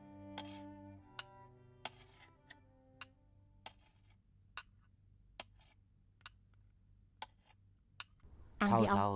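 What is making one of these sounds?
A spoon clinks against a ceramic bowl.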